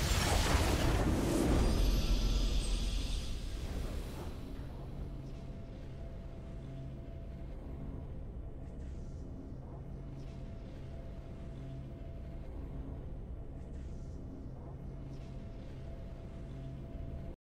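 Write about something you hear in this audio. A triumphant game music theme plays softly.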